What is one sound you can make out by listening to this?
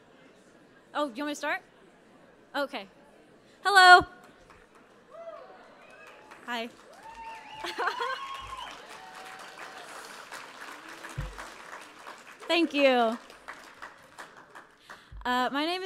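A young woman speaks through a microphone in a large hall, with pauses.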